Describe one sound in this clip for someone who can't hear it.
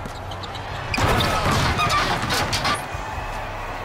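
A crowd cheers loudly in a large hall.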